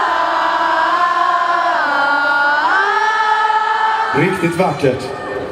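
A band plays loud music through loudspeakers.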